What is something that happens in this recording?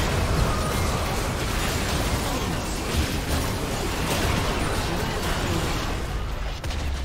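Game spell effects whoosh, crackle and boom in a fierce battle.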